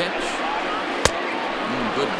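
A bat cracks sharply against a ball.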